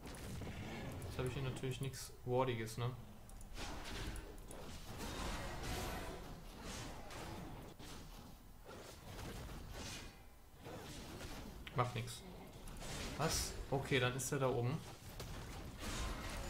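Game sound effects whoosh and clash.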